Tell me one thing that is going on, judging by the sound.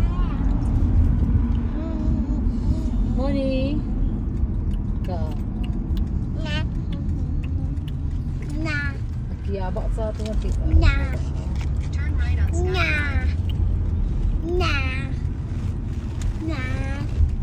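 A car engine rumbles low and steady inside the car.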